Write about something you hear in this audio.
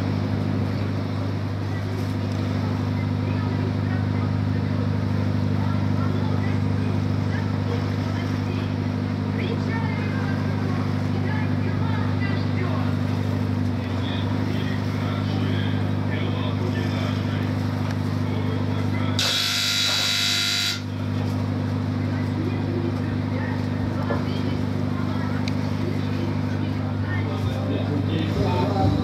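A ship's engine hums low and steady close by.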